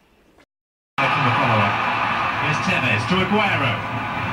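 A football crowd roars through a television loudspeaker.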